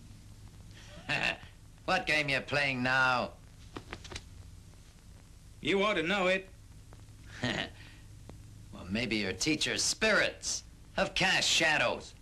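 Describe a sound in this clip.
A young man speaks in a taunting voice, close by.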